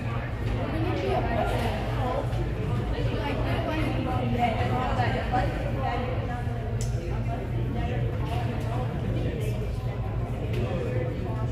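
Young women talk and chatter together nearby.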